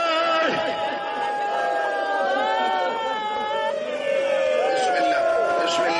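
A man chants in a long, wavering singing voice through a microphone and loudspeakers.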